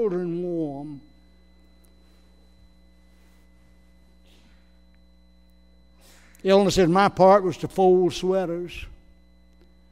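An elderly man preaches with emphasis through a microphone in a large echoing room.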